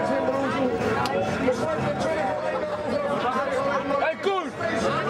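A crowd of young men and women chatter and call out loudly all around.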